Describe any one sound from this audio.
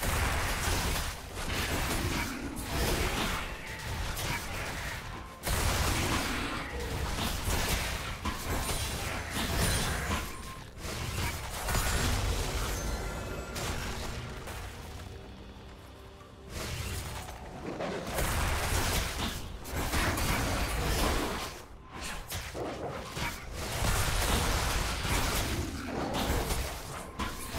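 Game weapons clash and strike in quick hits.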